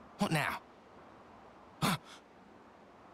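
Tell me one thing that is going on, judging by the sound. A young man grunts in surprise.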